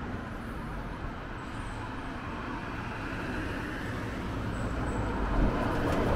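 A bus approaches with a low engine rumble.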